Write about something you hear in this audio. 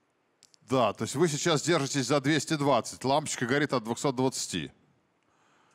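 An older man talks with animation into a microphone.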